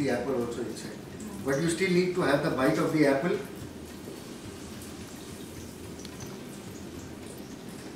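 Oil sizzles softly in a pan.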